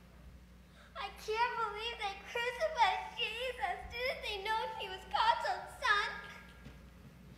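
A young girl speaks loudly and with animation.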